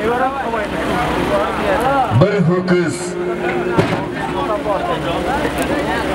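Men talk loudly close by.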